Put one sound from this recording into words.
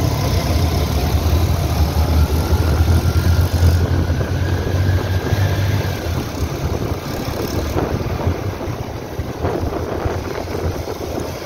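A motorcycle engine hums steadily up close while riding.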